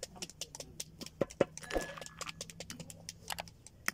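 A walnut knocks against a stone.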